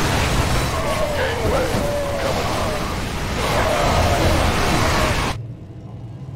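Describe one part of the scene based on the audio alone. Gunfire and explosions crackle in a loud battle.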